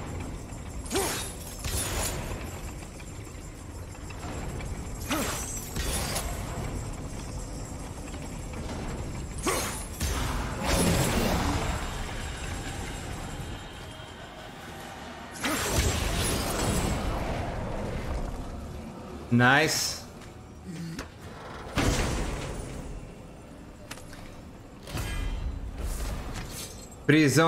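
Heavy metal blows clang and echo.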